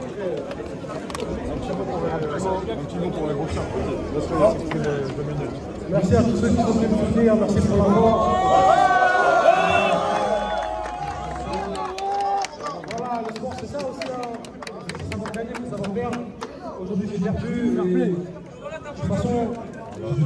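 A crowd of young men murmurs and chatters outdoors.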